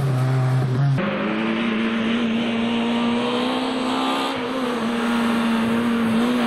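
A third rally car approaches on a gravel road at full throttle.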